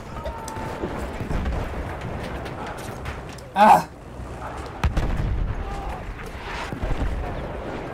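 Heavy explosions boom and rumble nearby.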